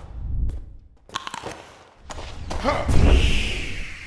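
A magic spell whooshes and hums.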